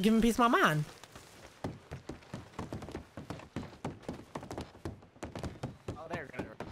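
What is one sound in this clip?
Footsteps thud quickly on wooden stairs and boards.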